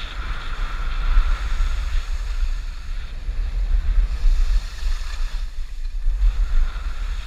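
Wind rumbles and buffets loudly against the microphone.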